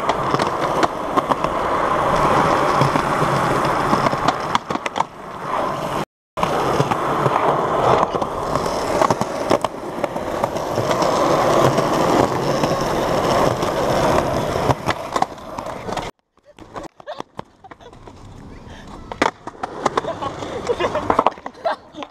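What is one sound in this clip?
Skateboard wheels roll loudly over rough pavement.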